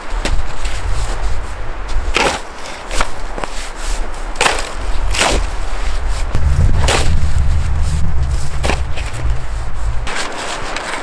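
A metal tool strikes hard ice with sharp, repeated blows.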